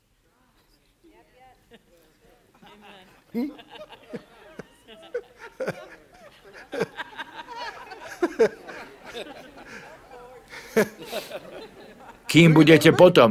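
An audience laughs in a large room.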